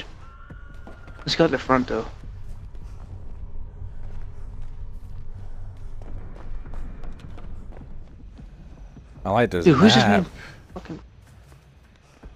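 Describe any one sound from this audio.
Footsteps thud across wooden floorboards.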